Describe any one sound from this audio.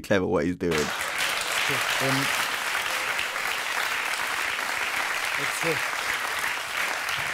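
A man speaks with animation through a television broadcast.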